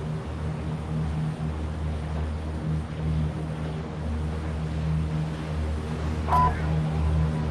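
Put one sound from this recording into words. A large plane's engines drone steadily.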